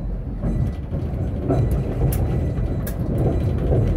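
Tram wheels click and clack over rail joints.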